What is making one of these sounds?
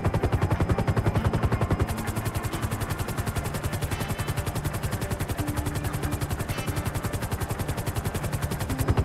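Helicopter rotor blades thump rapidly and steadily.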